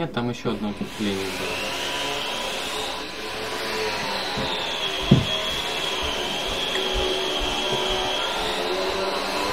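Water flows and splashes steadily.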